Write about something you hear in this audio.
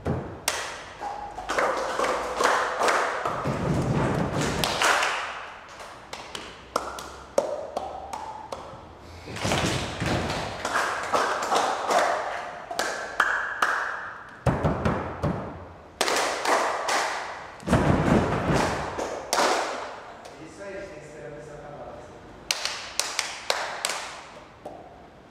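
People clap their hands sharply.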